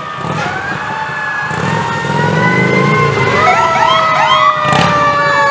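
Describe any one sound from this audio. A motorcycle engine rumbles past.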